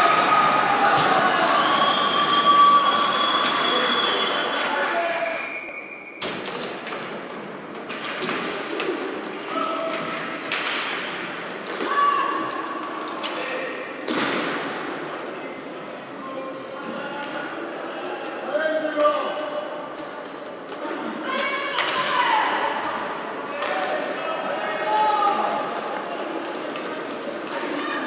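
Skate wheels roll and rumble on a hard floor.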